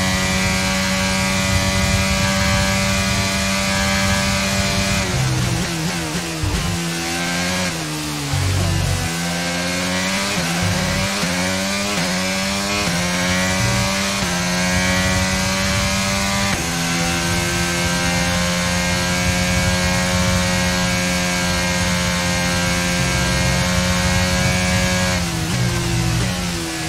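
A racing car engine screams at high revs, dropping sharply as the car brakes and rising again as it speeds up through the gears.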